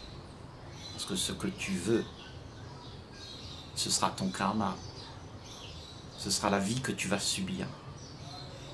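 An elderly man speaks calmly and warmly, close to a microphone, in short phrases with pauses.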